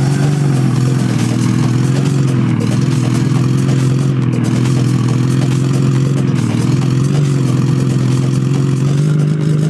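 A truck engine drones steadily, rising and falling slightly in pitch.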